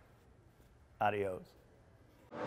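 A man laughs briefly.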